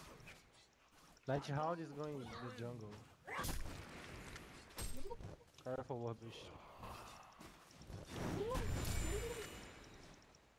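Weapons strike and clang in a fight.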